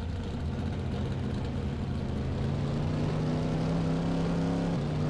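A race car engine hums and rises in pitch as the car speeds up.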